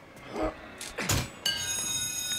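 A heavy hammer slams down onto a metal target with a loud clang.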